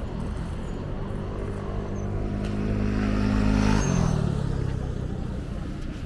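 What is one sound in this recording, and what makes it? A motor scooter passes close by with a rising, then falling engine whine.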